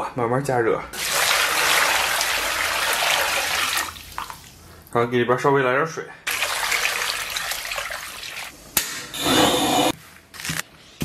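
Water pours and splashes into a pot.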